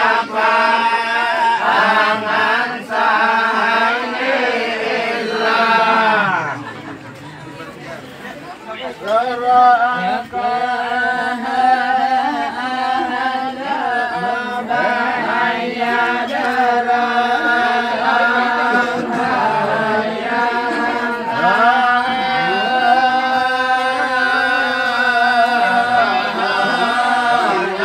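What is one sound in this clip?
A group of men chant together loudly in unison, close by.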